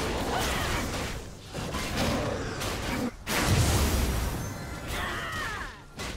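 Fantasy game spells whoosh and crackle in quick bursts.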